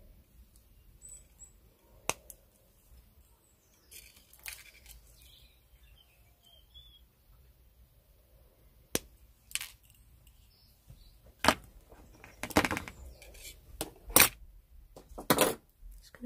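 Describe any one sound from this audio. Wire scrapes and ticks against a stone pendant.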